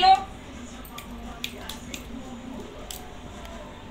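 Plastic toys click and rattle as a baby handles them.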